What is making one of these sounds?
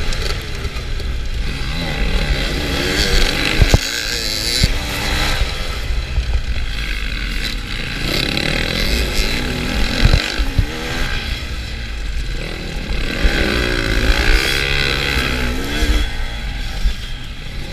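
Other dirt bikes roar nearby.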